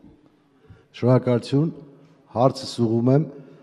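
A middle-aged man speaks with emphasis into a microphone.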